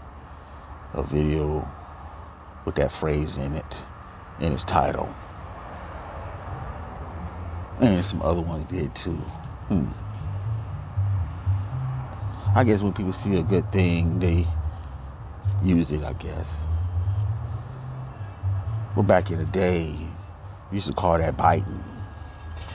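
A middle-aged man speaks close to a microphone in short, emotional bursts.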